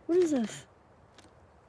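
A man exclaims with animation, close by.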